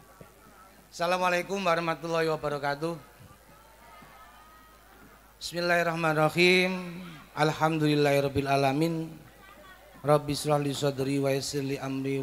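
A man sings loudly through a microphone and loudspeakers, holding long notes.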